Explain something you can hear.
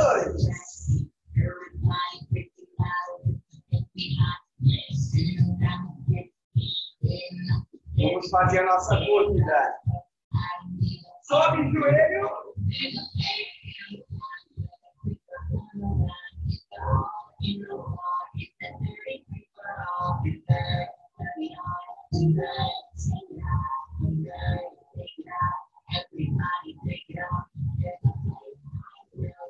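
Feet stomp on the floor in a steady rhythm.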